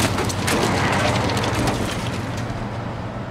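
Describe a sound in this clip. A heavy truck roars past on a road.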